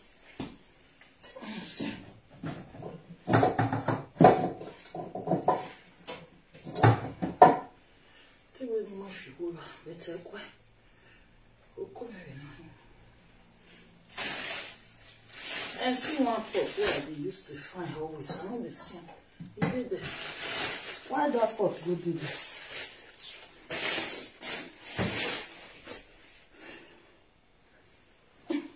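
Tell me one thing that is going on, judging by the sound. Pots and pans clatter and bang on a hard floor.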